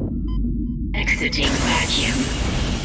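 Steam hisses out in a loud burst.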